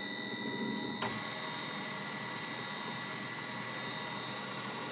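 A metal lathe starts up and spins with a steady whirring hum.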